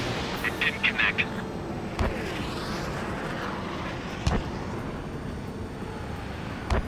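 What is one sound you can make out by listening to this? A jet engine roars steadily overhead.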